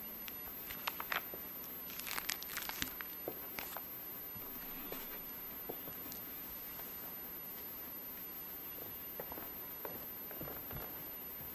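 Small objects clink and knock softly in a large echoing hall.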